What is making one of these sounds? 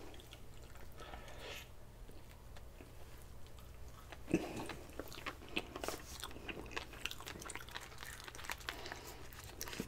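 A man chews food noisily and wetly, close to a microphone.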